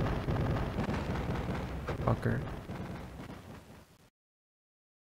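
A low rumbling blast fades away in a video game.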